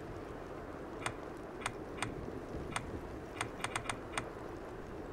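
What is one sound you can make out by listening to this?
Short electronic blips tick quickly as a game menu is scrolled.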